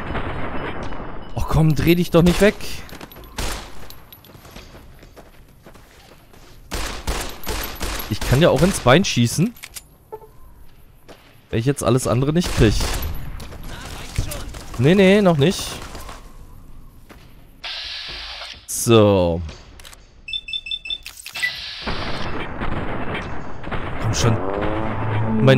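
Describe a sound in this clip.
Gunshots crack repeatedly.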